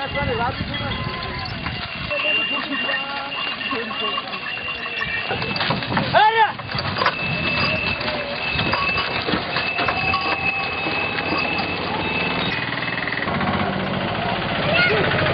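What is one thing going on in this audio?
Cattle hooves clop on the road.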